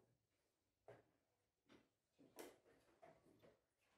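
A chess clock button clicks sharply.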